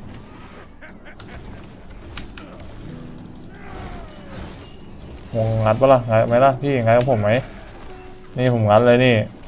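Blades slash and magic blasts crack in a fierce fight.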